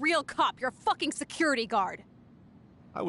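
A young woman speaks angrily and loudly.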